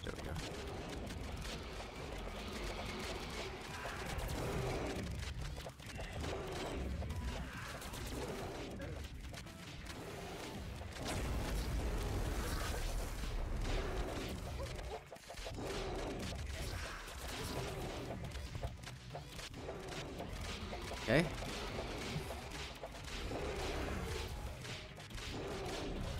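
Magic blasts and hits crackle and thump in a busy video game battle.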